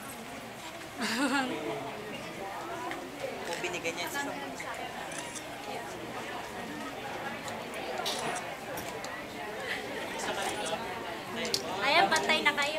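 A young woman cries out excitedly.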